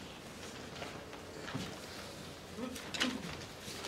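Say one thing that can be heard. Papers rustle as an older man handles them.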